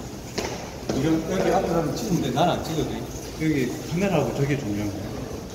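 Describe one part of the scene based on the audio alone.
A young man talks nearby in an echoing hallway.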